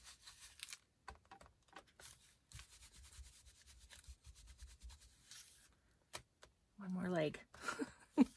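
A tool taps on an ink pad.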